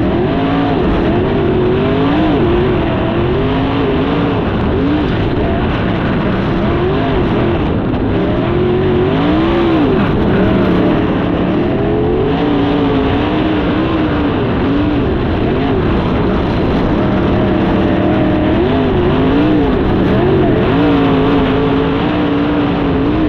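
A race car engine roars loudly up close, its pitch rising and falling as it revs.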